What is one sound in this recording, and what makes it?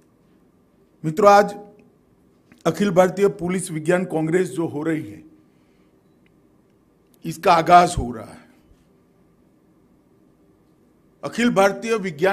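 A man speaks firmly into a microphone through loudspeakers, in short bursts with pauses.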